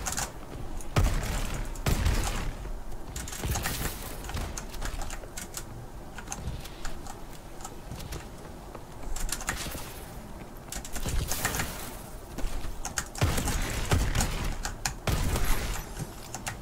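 Gunfire from a video game rifle bursts in short volleys.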